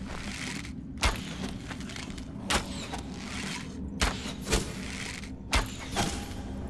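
Sharp snapping twangs of a bow firing arrows ring out every second or so.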